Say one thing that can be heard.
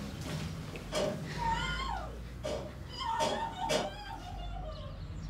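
A young woman speaks in a worried voice nearby.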